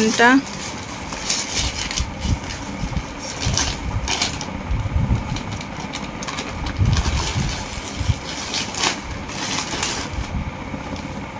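A plastic bag crinkles and rustles in a woman's hands.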